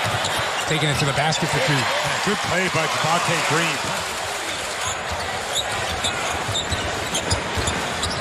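A large arena crowd murmurs and cheers.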